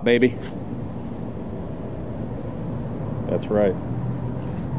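A man speaks a few short words nearby.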